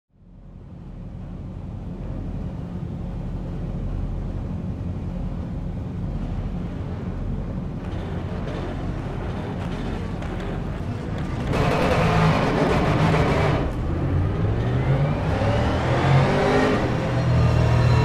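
A racing car engine hums low and steady, then revs louder and rises in pitch.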